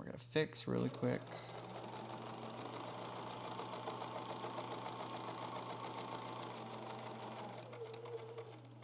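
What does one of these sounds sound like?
A sewing machine hums and whirs steadily.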